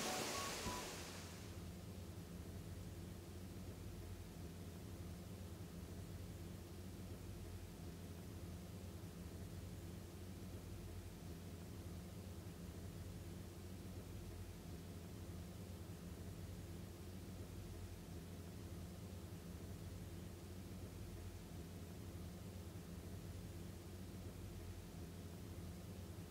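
Heavy rain falls steadily.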